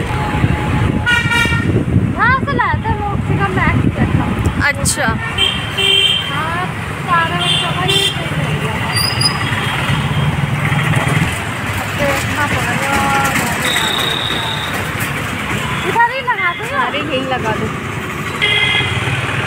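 Vehicle horns honk repeatedly in passing traffic.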